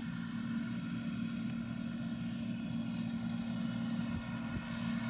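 A combine harvester's cutter rattles through dry crop.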